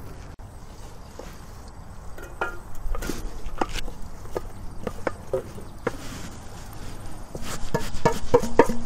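A wooden spoon scrapes against a metal bowl.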